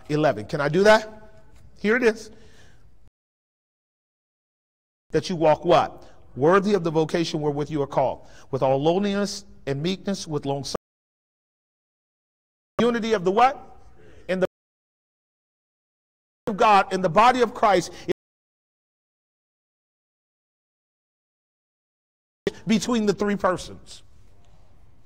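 A man preaches with animation through a microphone in a large echoing hall, pausing between phrases.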